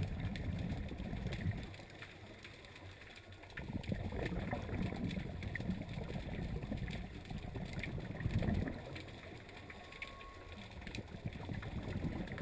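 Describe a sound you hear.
Air bubbles from a diver's breathing gurgle and rumble underwater in bursts.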